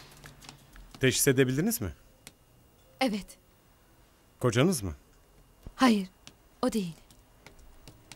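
A man speaks calmly and firmly nearby.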